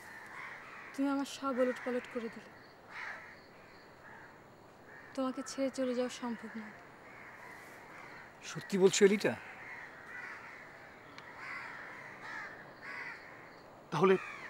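A woman speaks tensely close by, in short bursts.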